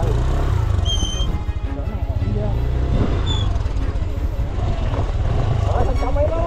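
A motorbike engine rumbles and sputters at low speed.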